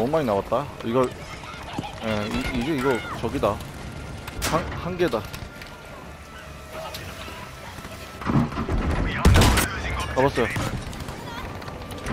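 Heavy gunshots and explosions boom nearby.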